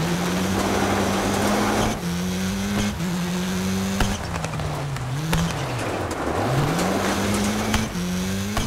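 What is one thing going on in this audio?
Gravel crunches and sprays under tyres.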